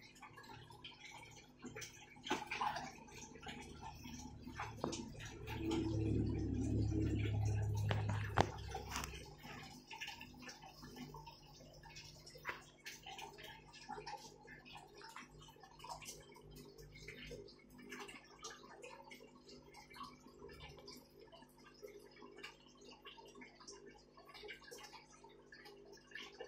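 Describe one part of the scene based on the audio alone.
Air bubbles gurgle and fizz steadily in water.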